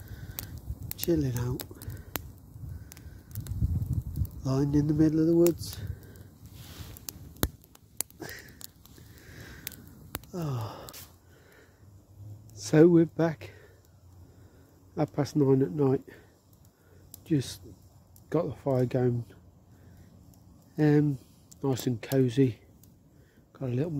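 A man speaks quietly and close by.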